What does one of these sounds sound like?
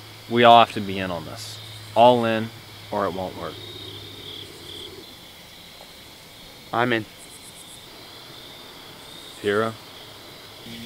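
A young man speaks quietly, close by.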